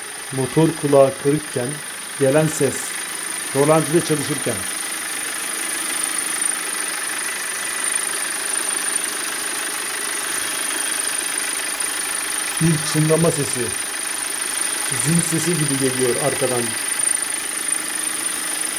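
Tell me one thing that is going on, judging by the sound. A car engine idles steadily up close, with a faint high whine.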